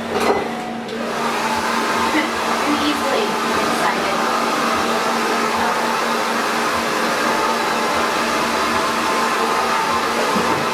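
A hair dryer blows steadily close by.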